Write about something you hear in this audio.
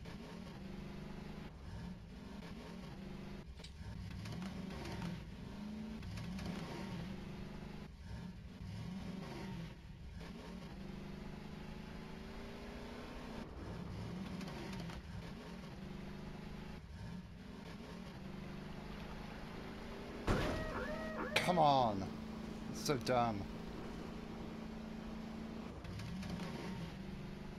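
A small engine hums and revs up and down.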